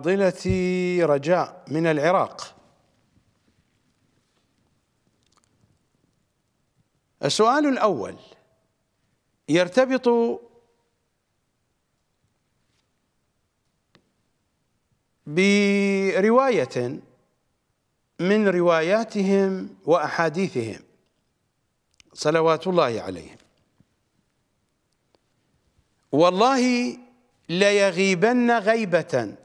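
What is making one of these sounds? A middle-aged man speaks into a close microphone, reading out slowly in bursts with long pauses.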